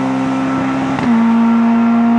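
A rally car's engine note drops sharply with a gear change.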